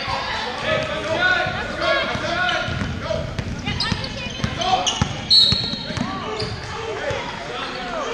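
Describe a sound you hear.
Spectators talk and call out throughout a large echoing gym.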